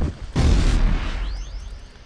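A magic blast bursts with a loud whoosh.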